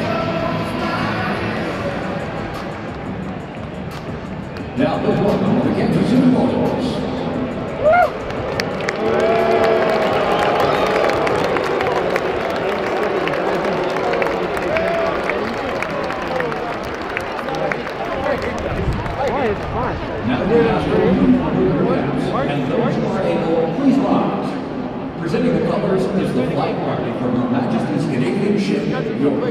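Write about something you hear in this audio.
A large crowd murmurs and chatters in a large echoing stadium.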